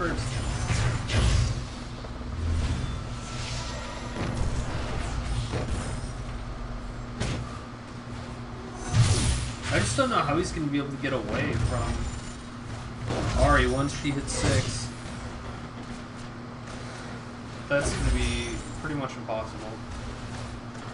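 Magic blasts and bursts crackle in a video game.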